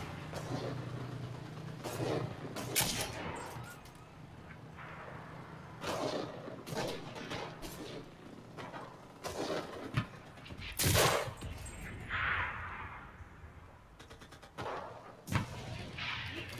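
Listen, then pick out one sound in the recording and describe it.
Rifle shots crack loudly, with short echoes.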